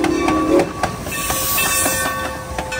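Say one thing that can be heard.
Steam hisses loudly from a passing locomotive.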